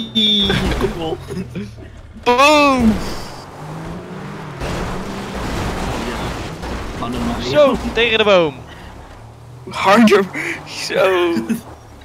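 A heavy truck engine rumbles as the truck drives over rough ground.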